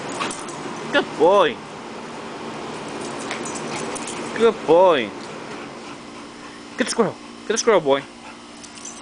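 A young pit bull yelps in short, high whines.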